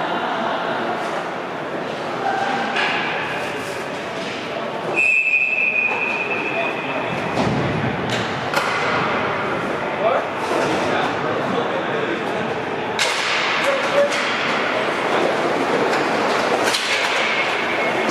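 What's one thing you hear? Roller skate wheels roll and scrape across a hard floor in a large echoing hall.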